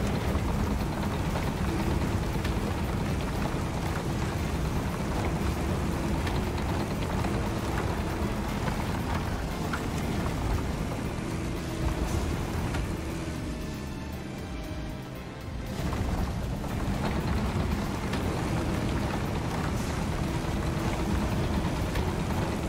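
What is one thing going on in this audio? Bulldozer tracks clank as they roll over dirt.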